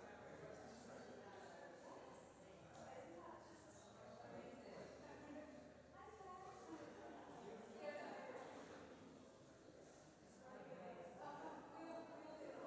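Several adults chat quietly in a large echoing hall.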